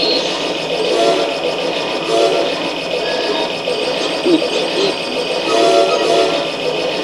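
Short electronic menu beeps sound through a television speaker.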